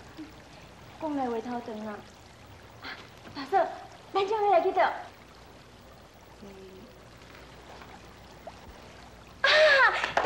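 A second young woman answers with animation, close by.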